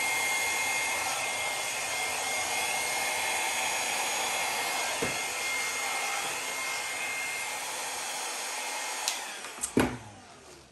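A heat gun blows with a steady whooshing hum, then switches off.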